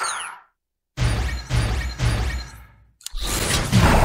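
Bright electronic chimes ring one after another.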